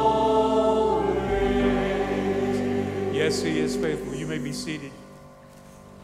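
A choir sings loudly in a large hall.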